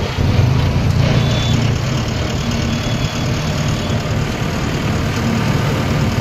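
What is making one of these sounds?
Tractor tyres roll over a paved road.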